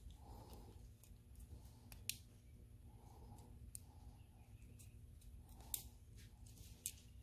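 A small plastic connector clicks and rattles as hands handle it close by.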